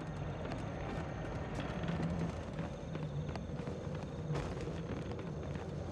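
Small footsteps patter across the ground.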